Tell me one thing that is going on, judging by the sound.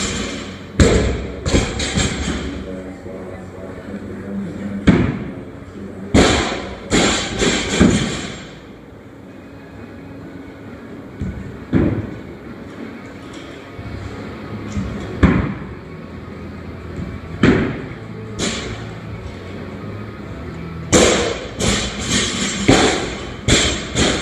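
Weights thud and clang on a hard floor in an echoing room.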